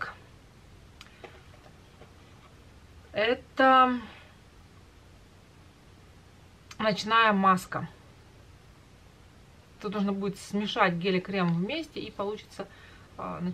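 A woman speaks calmly and softly, close to the microphone.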